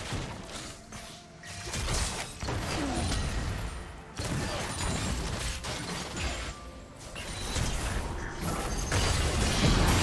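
Video game spells whoosh and crackle during a battle.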